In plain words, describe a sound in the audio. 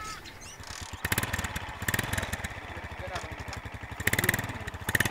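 A motorbike engine putters close by.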